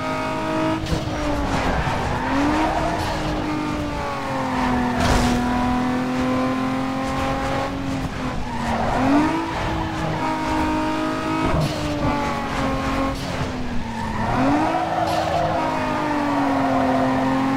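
Car tyres screech while sliding through corners.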